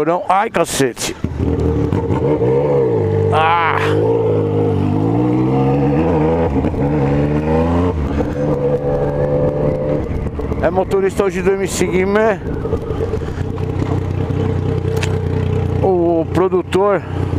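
A motorcycle engine hums and rises and falls in pitch as the bike speeds up and slows down.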